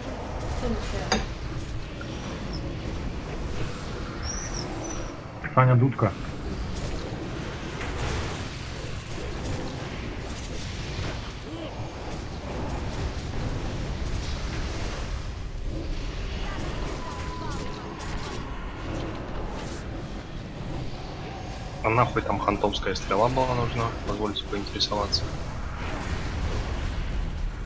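Magic spells whoosh and burst amid a noisy fantasy battle.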